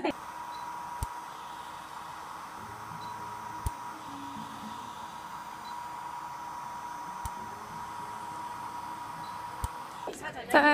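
A treatment device clicks sharply every few seconds.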